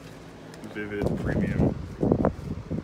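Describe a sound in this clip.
A sheet of paper rustles as a hand handles it.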